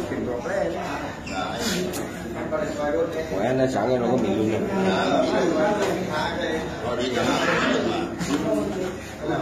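Young men talk together close by, with animation.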